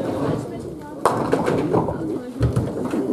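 Pins clatter as a ball strikes them.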